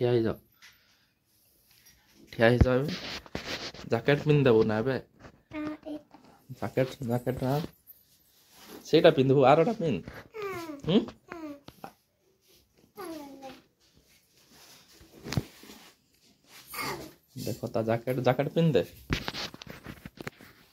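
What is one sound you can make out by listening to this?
A young boy talks close by, with animation.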